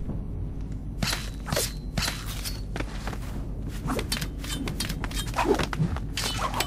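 Swords clash and strike in quick bursts.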